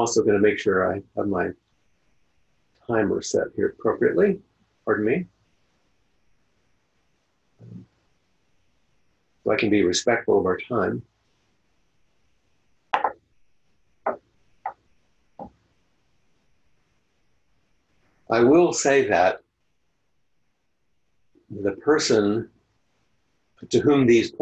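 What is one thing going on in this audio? An older man speaks calmly with long pauses, heard through an online call.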